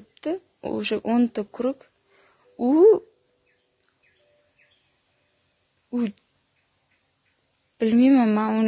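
A young woman speaks calmly and with animation close to a microphone, in short bursts with pauses.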